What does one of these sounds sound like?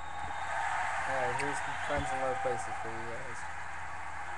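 A young man speaks calmly, close to a webcam microphone.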